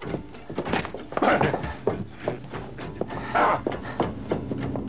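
A man grunts and groans with effort.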